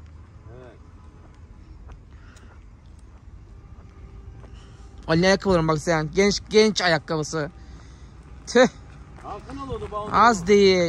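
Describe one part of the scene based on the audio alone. Footsteps crunch slowly on a gravel road.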